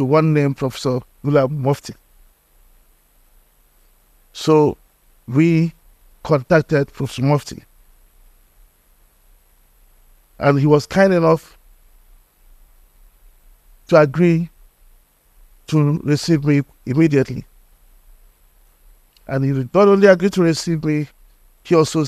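A middle-aged man speaks calmly and slowly into a microphone, with long pauses.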